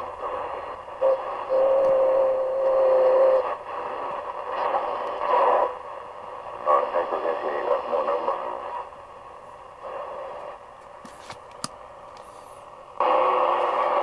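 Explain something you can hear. A radio plays shifting static and snatches of broadcast sound as it is tuned.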